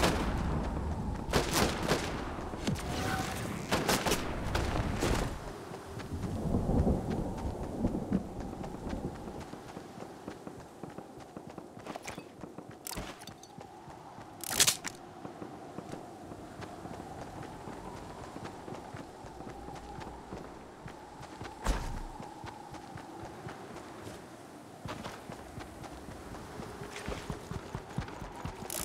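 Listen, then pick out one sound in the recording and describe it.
Quick footsteps patter on grass and then on a paved road.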